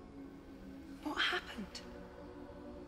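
A young woman speaks, close by.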